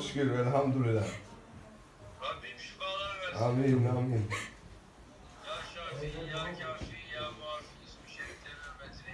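A man speaks warmly close by.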